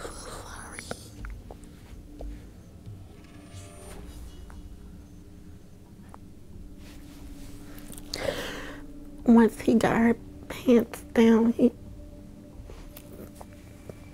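A woman sobs quietly close by.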